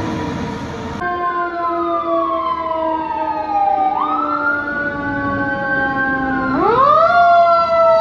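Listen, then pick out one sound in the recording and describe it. A fire truck's siren wails and rises and falls.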